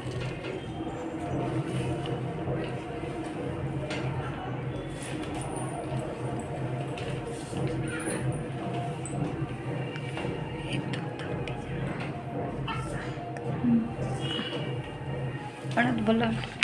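A newborn baby cries weakly, close by.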